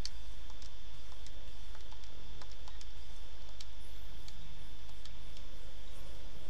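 Soft menu clicks sound as options are selected.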